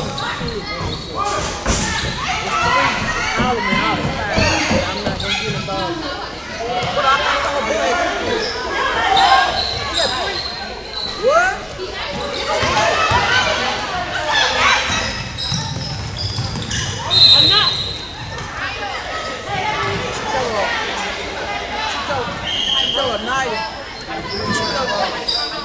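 Sneakers squeak sharply on a wooden floor in a large echoing gym.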